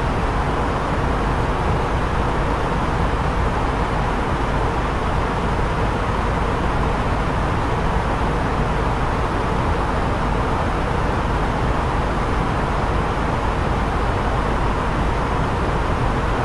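A steady, loud roar of jet engines and rushing air drones on.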